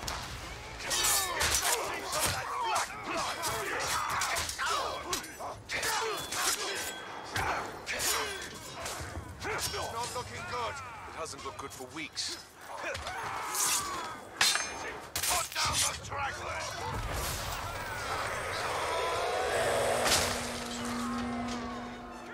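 Swords clash and strike in a fierce fight.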